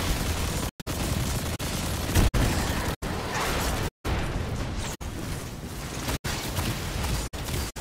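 Fiery explosions roar and crackle.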